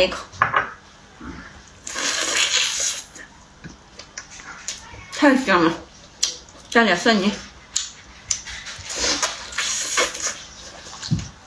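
A young woman chews and slurps food noisily.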